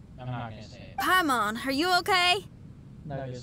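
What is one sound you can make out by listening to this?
A young girl speaks in a high, lively voice.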